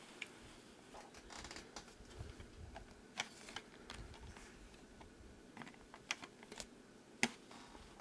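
Small plastic parts of a toy truck click softly as a hand handles it.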